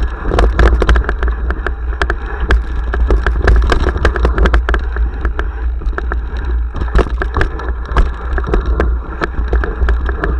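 Wind rumbles loudly across a microphone outdoors.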